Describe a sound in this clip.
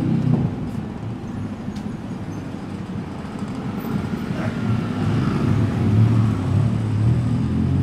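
A car engine hums as the car drives past close by.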